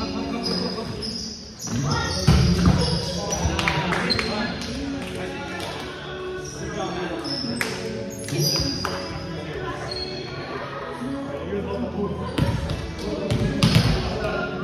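Young men and women chatter and call out across a large echoing gym.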